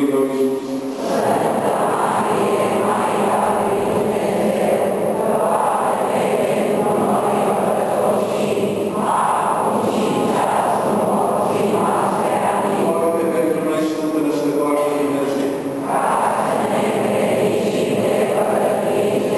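A crowd of people sings together in a large echoing hall.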